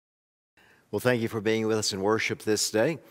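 A man speaks calmly and steadily into a microphone.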